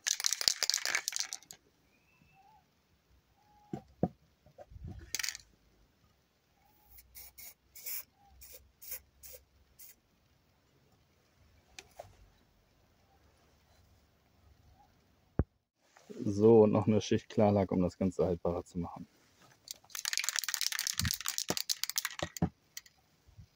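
Spray paint hisses out of an aerosol can in short bursts.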